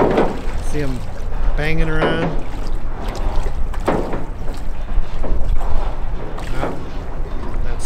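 Small waves lap against a hull.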